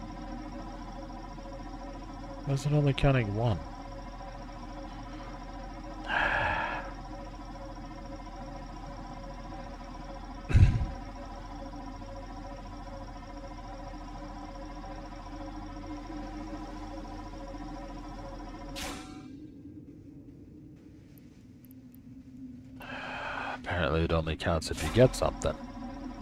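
A mining laser hums steadily with a low electronic drone.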